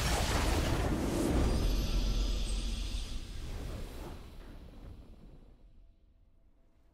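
A triumphant fanfare swells, then fades away.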